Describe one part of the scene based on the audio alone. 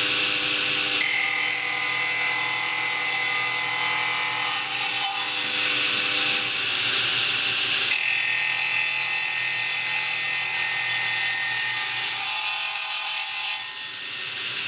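Wood grinds against a spinning cutter.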